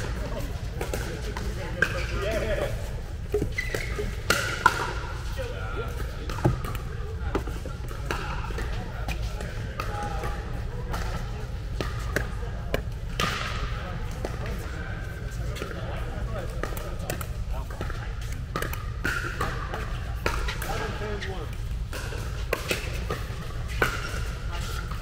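Adults talk and call out across a large echoing hall.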